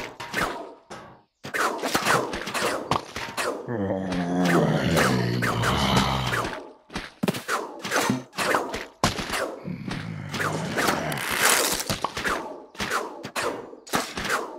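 Quick game pops and splats sound in rapid succession.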